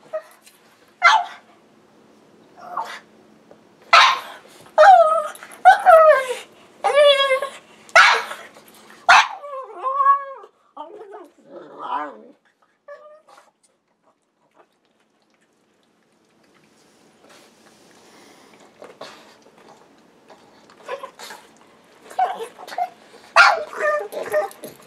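A small dog whines and yelps close by.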